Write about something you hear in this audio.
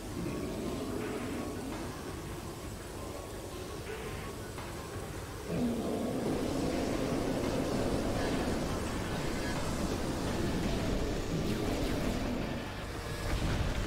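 A beam weapon fires with a steady crackling hum.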